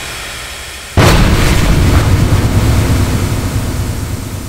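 Fireballs whoosh and roar loudly.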